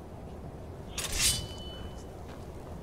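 A sword is drawn with a metallic ring.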